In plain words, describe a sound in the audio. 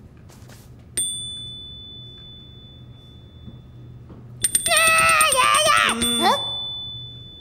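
A small desk bell rings with a bright ding, twice.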